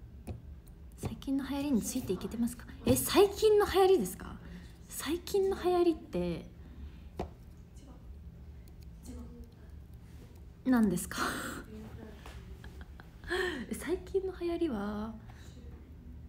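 A young woman talks casually, close up.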